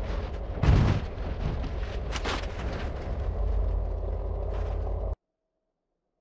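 Heavy wheels rumble and bang over rough ground.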